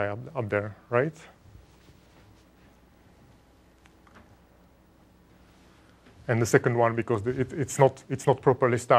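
A young man lectures calmly through a microphone.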